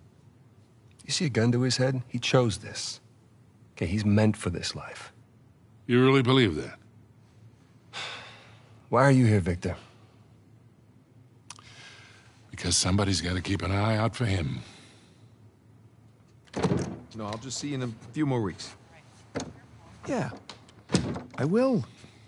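A younger man speaks calmly.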